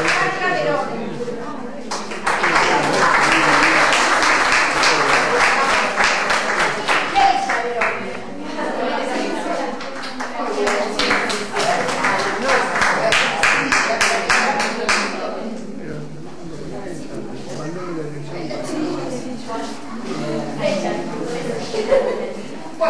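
Young women chatter and talk at once.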